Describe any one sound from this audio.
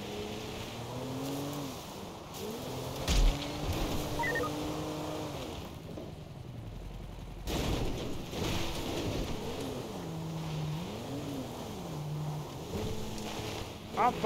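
A car engine revs and strains, rising and falling in pitch.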